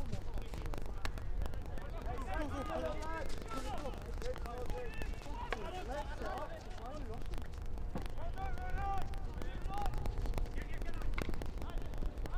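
Hockey sticks smack a ball with sharp clicks.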